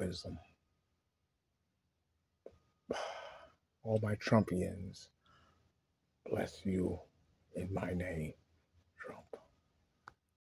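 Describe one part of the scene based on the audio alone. A man talks with animation close to a phone's microphone, in short bursts.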